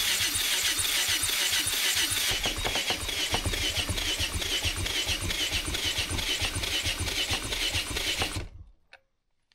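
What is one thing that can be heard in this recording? A cordless drill whirs loudly.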